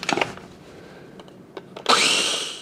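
A plastic lid clicks into place.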